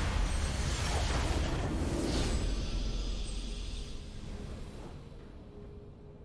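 A triumphant game fanfare bursts out loudly and then fades away.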